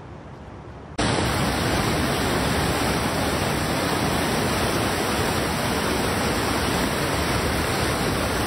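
A swollen river rushes and roars close by.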